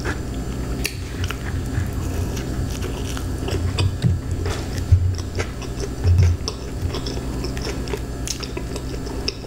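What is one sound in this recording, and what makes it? A woman chews food close to a microphone with wet, crunchy sounds.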